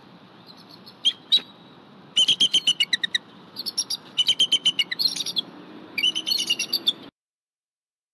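A bald eagle calls with rapid, high chittering cries.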